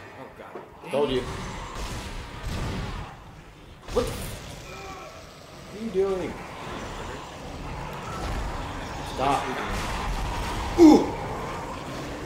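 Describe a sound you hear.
A monster shrieks and growls.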